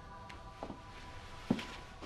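A boy speaks quietly up close.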